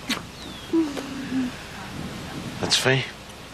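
A middle-aged man laughs warmly.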